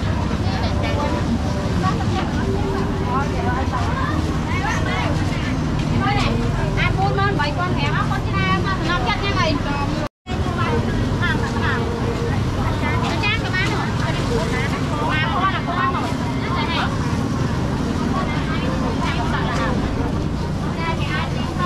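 Several women talk with animation close by.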